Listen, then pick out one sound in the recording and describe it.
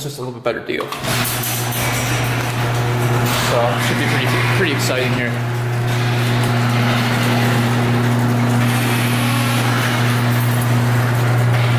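A motorized door opener hums steadily as a door rolls up.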